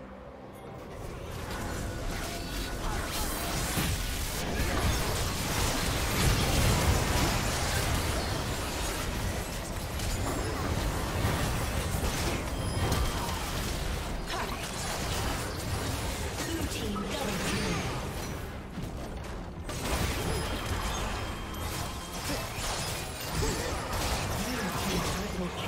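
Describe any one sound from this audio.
Game spell effects crackle and burst during a fight.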